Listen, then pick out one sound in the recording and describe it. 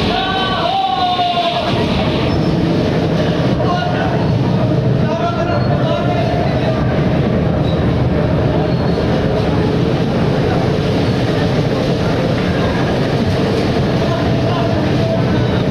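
Young people shout and laugh nearby.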